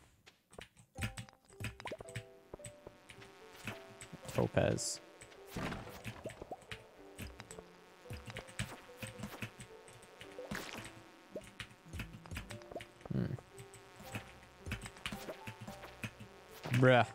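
Soft, plucky video game music plays.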